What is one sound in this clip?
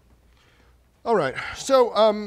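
A man speaks with animation, heard through a microphone.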